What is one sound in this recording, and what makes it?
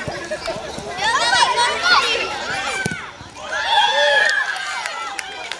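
Spectators cheer loudly outdoors.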